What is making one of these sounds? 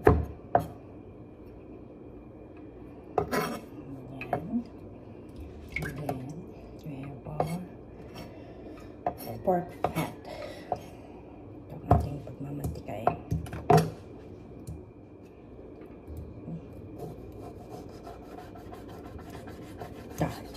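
A knife taps and chops on a wooden cutting board.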